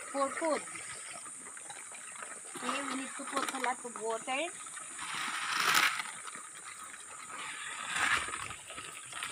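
Pigs grunt and snuffle nearby.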